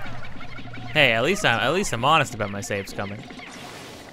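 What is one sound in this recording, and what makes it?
Small creatures let out loud warbling squeals.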